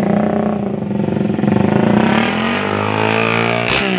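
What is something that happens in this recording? A motorcycle engine revs up as the motorcycle pulls away.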